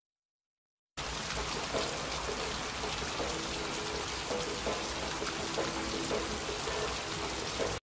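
Steady rain pours down outdoors.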